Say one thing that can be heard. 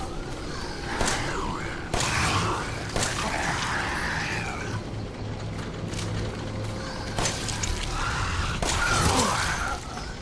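Shotgun blasts boom loudly several times.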